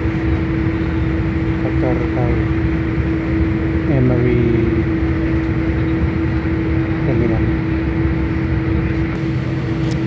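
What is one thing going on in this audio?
A vehicle engine hums steadily from inside as it rolls along.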